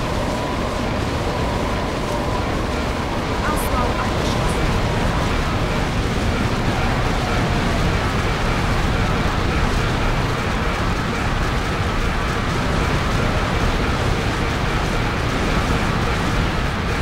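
Magic spells crackle and burst in a battle.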